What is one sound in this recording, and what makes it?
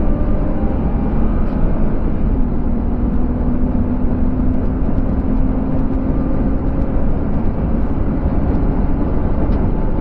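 A car engine roars steadily at high revs as the car speeds up.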